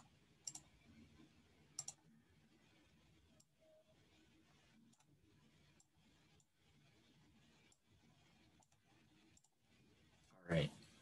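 A man speaks quietly through an online call.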